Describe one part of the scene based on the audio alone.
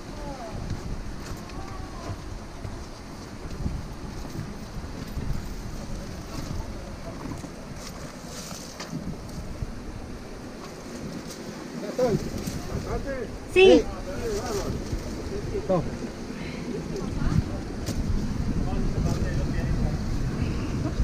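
Clothes and shoes scrape and shuffle against rock close by.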